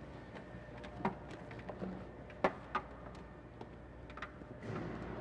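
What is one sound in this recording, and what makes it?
Objects clunk and rattle as they are handled.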